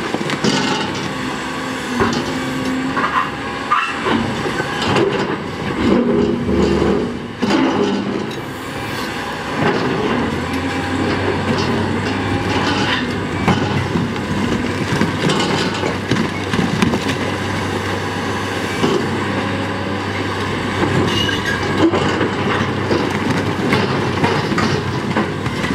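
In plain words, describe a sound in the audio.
A large excavator's diesel engine rumbles and roars steadily.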